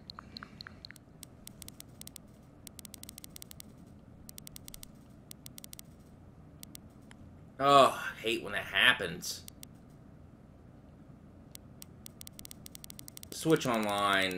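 Soft menu clicks tick rapidly as a list scrolls.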